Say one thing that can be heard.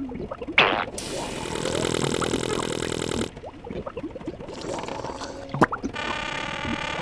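A toy-like machine whirs and hums with a buzzing tone.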